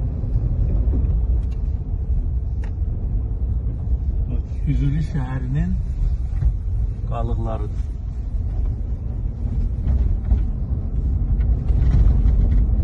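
A car engine hums and tyres rumble on the road throughout.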